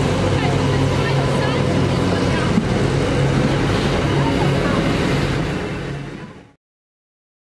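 A freight train rumbles and clatters past on the tracks, close by.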